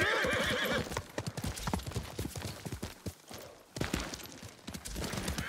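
A horse's hooves thud on soft ground at a quick, steady pace.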